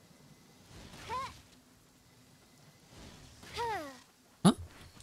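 An arrow is loosed from a bow with a bright whoosh.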